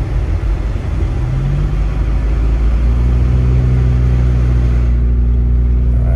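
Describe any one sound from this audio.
A car engine hums steadily and rises slightly in pitch.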